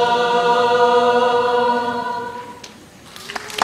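A large choir sings a held chord in a hall that echoes.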